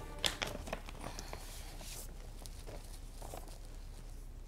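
Sheets of paper rustle as they are handled.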